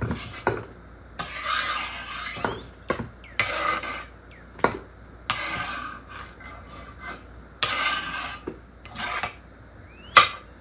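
A knife knocks against a cutting board.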